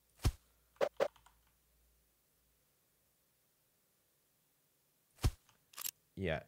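Short clicks sound as objects are placed in a game.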